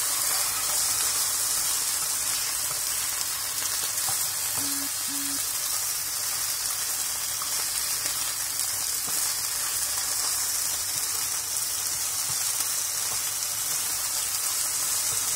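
Meat sizzles steadily in a hot pan.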